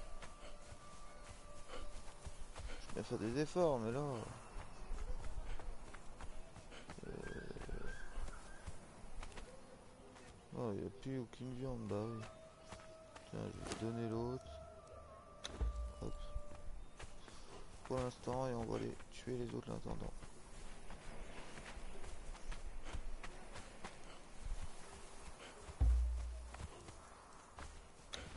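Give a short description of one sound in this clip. Footsteps run over sand.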